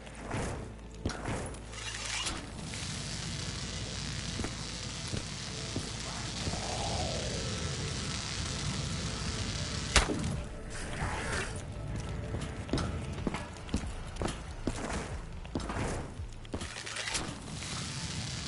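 Electricity crackles and buzzes from a charged bow.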